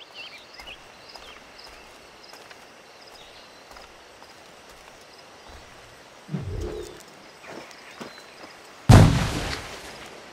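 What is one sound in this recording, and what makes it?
Footsteps crunch over grass and rock.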